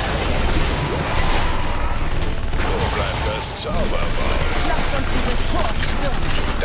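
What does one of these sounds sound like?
Spells and weapons blast and crackle in a busy fight.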